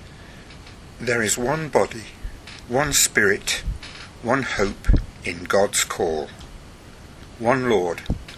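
An elderly man speaks calmly, close to a microphone.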